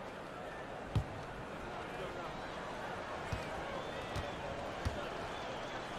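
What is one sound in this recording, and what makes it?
A basketball bounces on a hardwood floor a few times.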